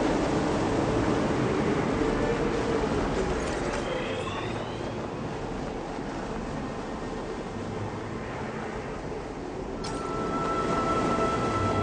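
A strong wind howls through a snowstorm.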